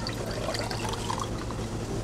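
Juice pours over ice into a tall glass.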